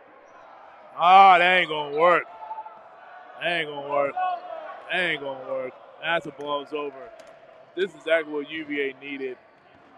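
A man shouts loudly close by in a large echoing hall.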